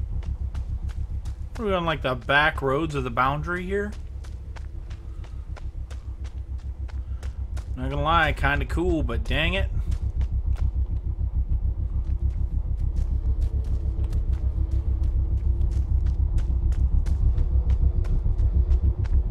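Footsteps thud quickly and steadily over soft ground.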